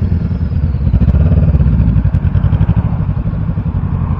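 Another motorcycle engine rumbles nearby and pulls away.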